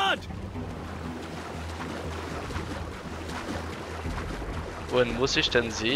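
Water splashes steadily as a swimmer strokes through it.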